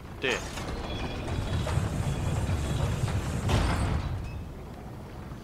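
Heavy wooden gears grind and rumble as a gate moves.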